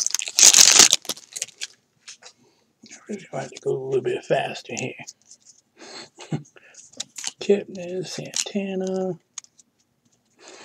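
Trading cards slide and flick against each other in hand.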